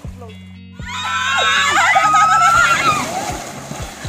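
Water splashes loudly as a person plunges into a pool.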